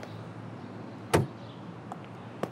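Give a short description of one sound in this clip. A car door handle clicks and the door opens.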